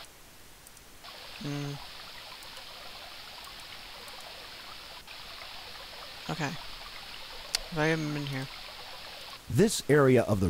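A river flows and murmurs steadily.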